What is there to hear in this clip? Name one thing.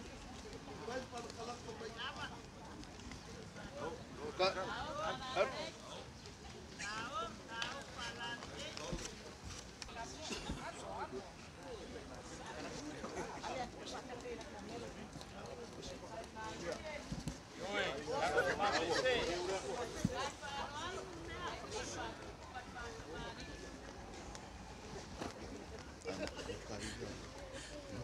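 A crowd of men and women chatter and call out nearby, outdoors.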